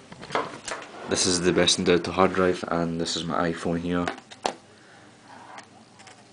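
A plastic phone case knocks and rattles as it is handled.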